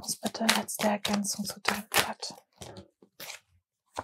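Playing cards slide and slap onto a wooden table.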